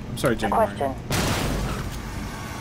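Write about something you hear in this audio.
A gun fires in a loud burst.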